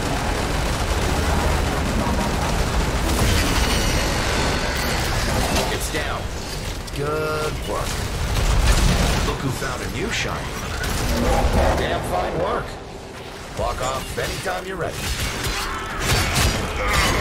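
Gunfire and laser blasts crackle in a video game.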